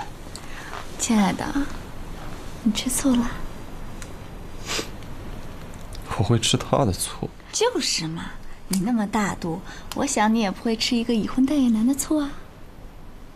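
A young woman speaks playfully and laughs softly close by.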